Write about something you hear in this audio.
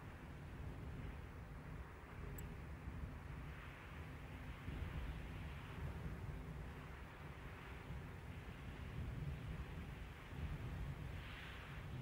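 Car engines rumble and idle nearby.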